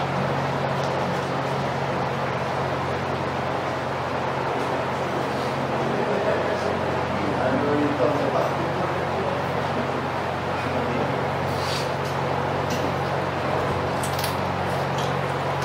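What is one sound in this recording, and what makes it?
A man reads out quietly over a loudspeaker.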